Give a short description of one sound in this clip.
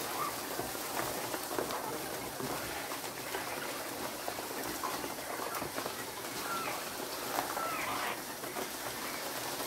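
A wire cage rattles and clinks under someone's hands.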